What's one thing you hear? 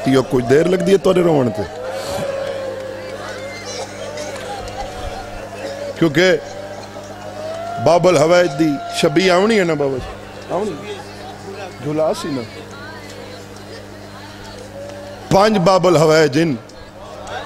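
A man speaks passionately and loudly into a microphone through loudspeakers, his voice rising into drawn-out cries.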